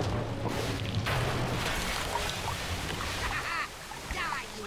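Water gushes and splashes.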